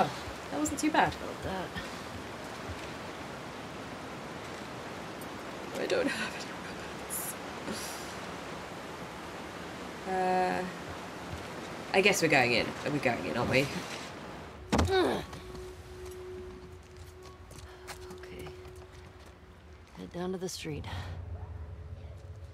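A young woman speaks casually into a nearby microphone.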